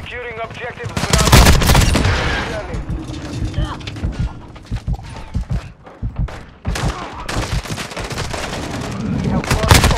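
Rapid gunfire cracks in loud bursts.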